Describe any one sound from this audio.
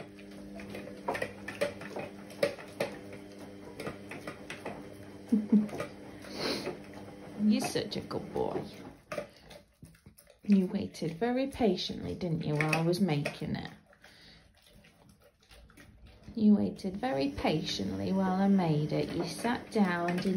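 A dog eats noisily from a metal bowl, crunching and lapping.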